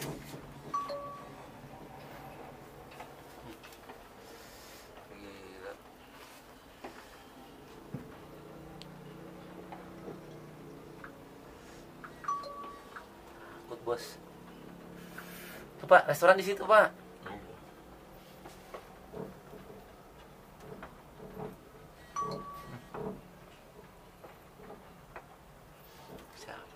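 A cable car cabin hums and creaks softly as it glides along its cable.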